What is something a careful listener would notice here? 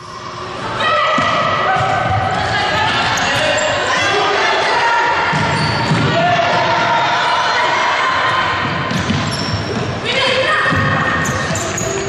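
A ball is kicked and thuds on the floor.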